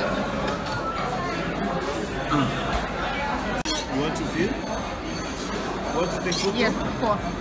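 A crowd of people chatters in a busy, echoing room.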